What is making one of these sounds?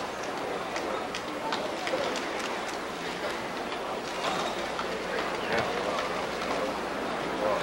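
A crowd murmurs in a large echoing hall.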